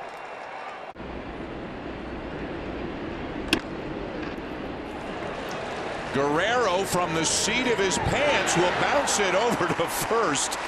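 A crowd murmurs in a large stadium.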